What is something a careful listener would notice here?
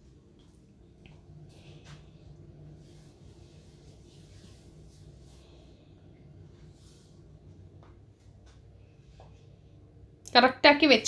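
Cloth rustles as it is folded and handled.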